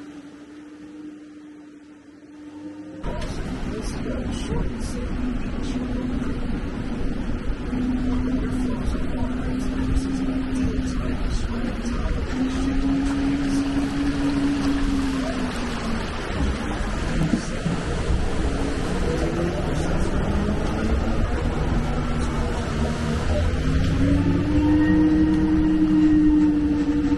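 A vehicle engine hums and changes pitch as it drives.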